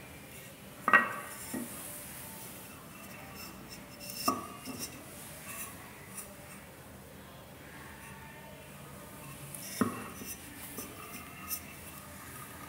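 Speaker frames knock and clatter against a hard surface.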